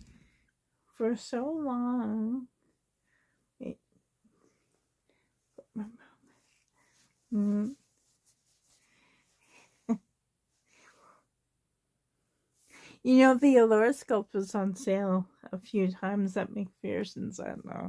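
A woman speaks softly and playfully up close.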